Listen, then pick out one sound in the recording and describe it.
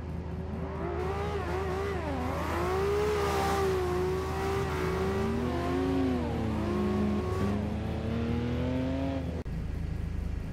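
A rotary-engine sports car revs up and down.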